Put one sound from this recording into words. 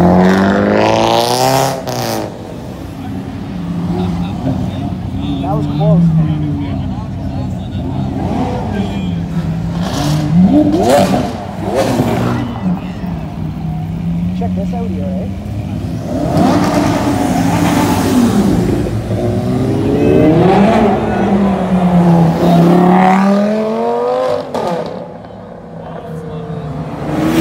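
Sports car engines rev loudly and roar past.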